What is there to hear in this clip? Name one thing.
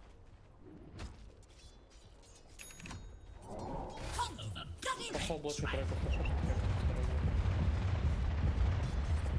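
Game spell effects crackle and zap.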